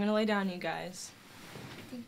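A woman speaks firmly up close.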